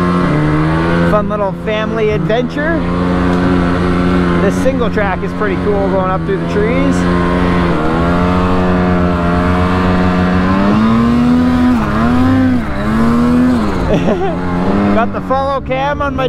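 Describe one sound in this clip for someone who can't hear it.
A snowmobile engine drones steadily close by, its pitch rising and falling as it revs.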